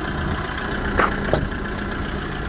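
A truck door clicks open.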